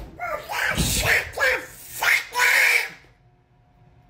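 A young man speaks loudly and with animation, close by.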